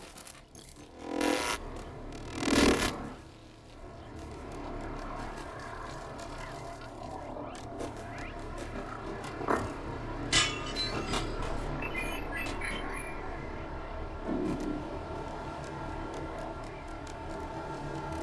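A low, steady ambient hum plays throughout.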